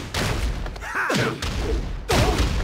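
A fighter crashes to the ground with a heavy thump.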